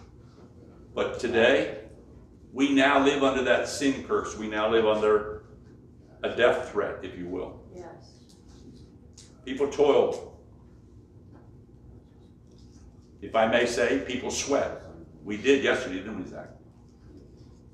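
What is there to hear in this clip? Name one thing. An older man speaks slowly and calmly, with pauses, in a room with a slight echo.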